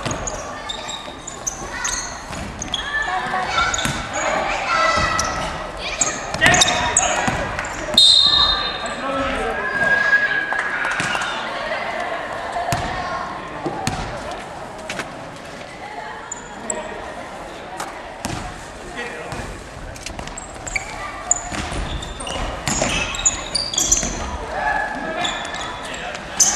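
Players shout and call out to each other in an echoing hall.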